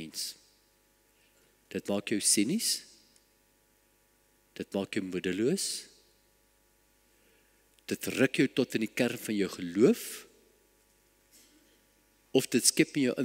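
An elderly man speaks calmly and deliberately through a microphone, with pauses between phrases.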